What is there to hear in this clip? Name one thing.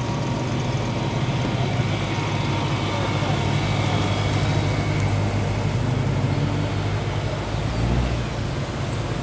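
A sports car engine rumbles deeply as the car rolls slowly past.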